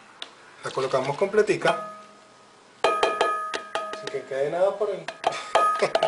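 Thick liquid pours into a metal bowl.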